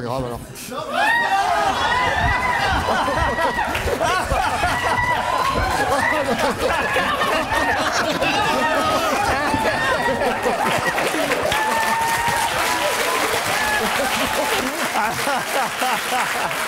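A studio audience cheers and shouts.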